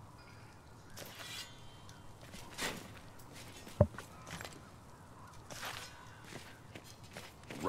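Footsteps scuff slowly on stone.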